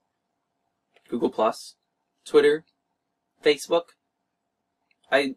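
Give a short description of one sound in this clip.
A man speaks calmly and clearly into a close microphone, in short bursts.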